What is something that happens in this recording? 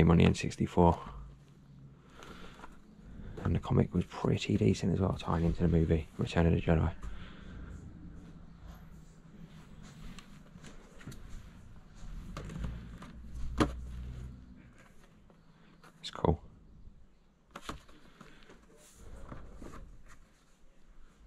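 Plastic toy packaging crinkles and clicks as hands handle it.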